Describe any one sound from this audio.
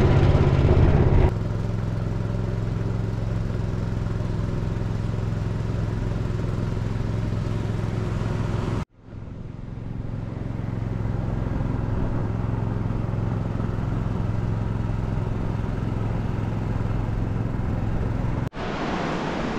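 A boat motor drones steadily.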